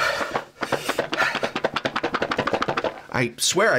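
Cards riffle rapidly as they are shuffled.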